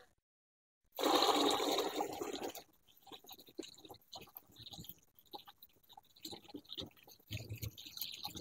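Water pours from a hose and splashes into a bucket.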